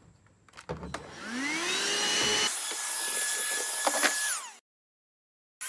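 A cordless vacuum motor spins up and whines steadily.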